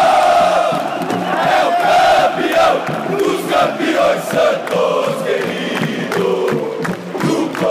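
Nearby men shout along close by.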